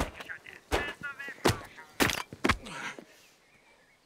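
A man stamps and kicks hard with loud thuds.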